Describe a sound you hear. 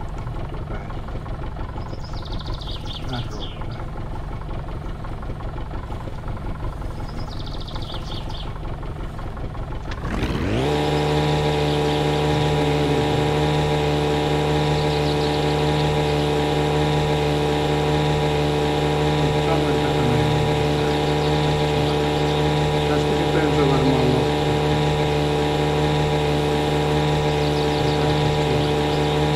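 A man speaks casually into a microphone.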